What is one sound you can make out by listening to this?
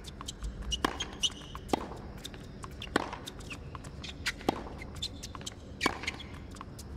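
Tennis balls are struck hard with rackets in a steady rally.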